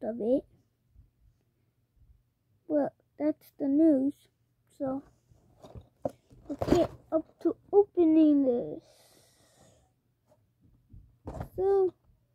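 A boy speaks with animation close to a microphone.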